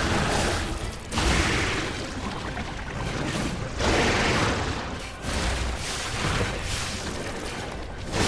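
A sword clashes and slashes.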